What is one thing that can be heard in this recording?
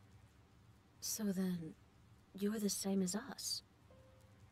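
A young woman answers softly.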